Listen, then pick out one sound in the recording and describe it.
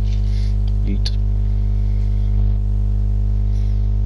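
A fishing line splashes lightly into calm water.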